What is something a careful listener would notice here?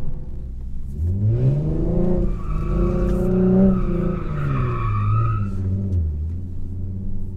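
A car engine revs up and then winds down.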